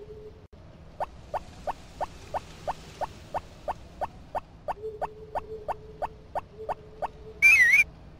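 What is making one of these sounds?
Light footsteps tap quickly in a steady rhythm.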